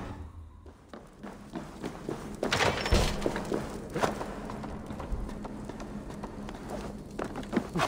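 Footsteps thud and creak on wooden steps and ladder rungs.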